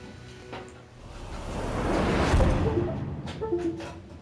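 A loud swoosh rises and fades.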